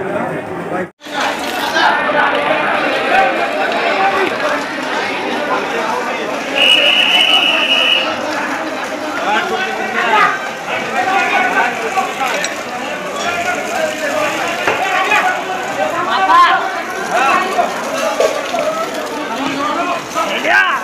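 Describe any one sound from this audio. A crowd of men talk and shout outdoors.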